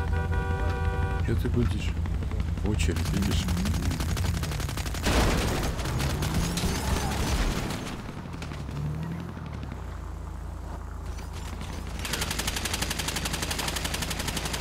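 A car engine rumbles and revs.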